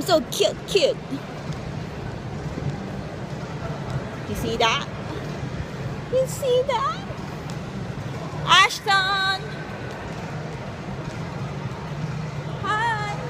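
A baby squeals and babbles close by.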